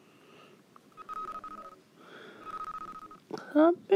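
Short electronic beeps sound twice.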